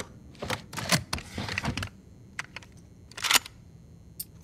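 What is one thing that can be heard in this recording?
Metal clicks and clacks as a shotgun is handled and racked.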